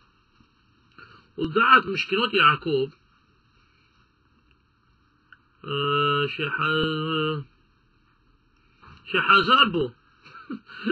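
A man speaks in short bursts.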